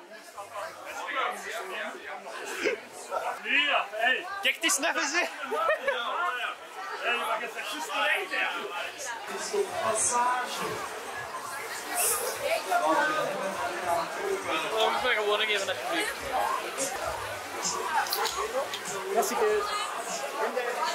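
A crowd of young people chatters in the background.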